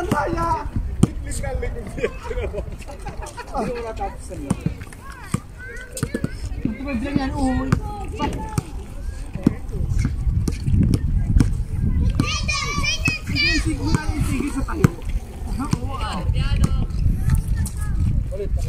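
A basketball bounces on hard asphalt.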